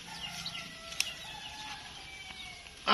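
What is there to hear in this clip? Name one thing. Scissors snip through a plant stem.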